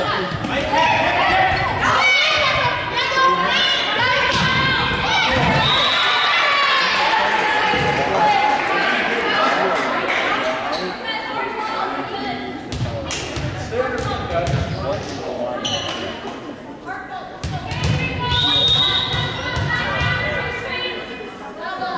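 A volleyball is hit with sharp slaps.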